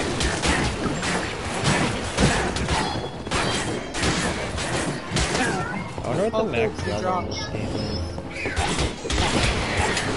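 Weapons clash and hit in a fast game battle.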